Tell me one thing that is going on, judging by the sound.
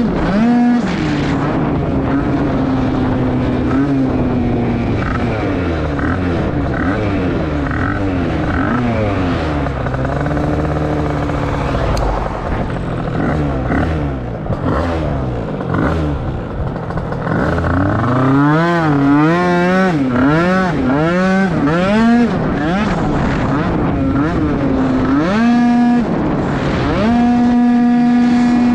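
An electric motor whines, rising and falling in pitch.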